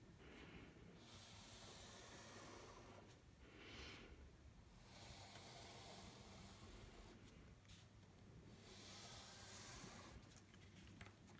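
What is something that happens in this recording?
A pencil scratches softly across paper.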